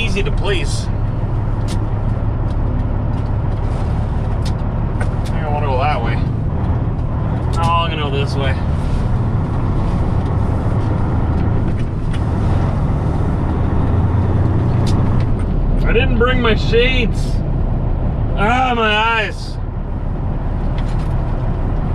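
A diesel engine rumbles steadily and close by.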